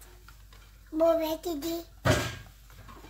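A young child speaks briefly nearby.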